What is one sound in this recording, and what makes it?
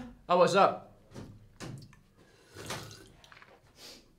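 A young man gulps a drink from a can.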